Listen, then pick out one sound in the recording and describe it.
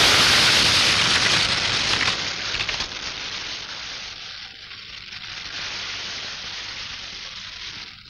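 A large fire roars and crackles outdoors.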